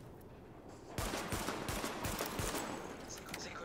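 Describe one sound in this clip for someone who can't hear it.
A rifle fires a rapid burst of shots outdoors.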